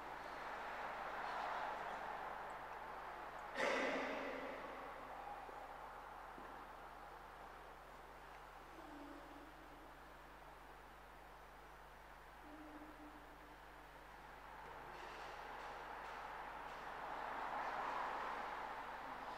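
A man murmurs quietly at a distance in a large echoing hall.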